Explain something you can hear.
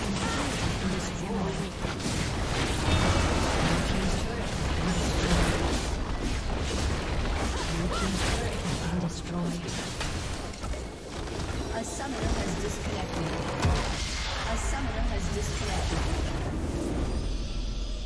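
Magic blasts and weapon hits crackle in a hectic battle.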